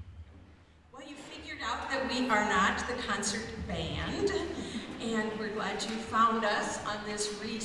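A middle-aged woman speaks calmly into a microphone in a large hall.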